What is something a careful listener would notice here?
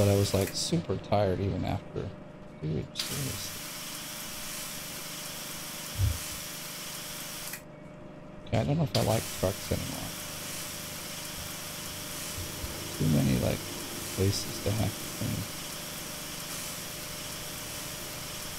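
A pressure washer sprays with a steady hiss.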